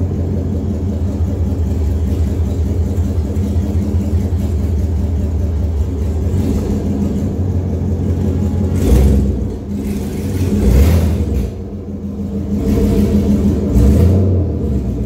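A pickup truck's engine rumbles loudly close by.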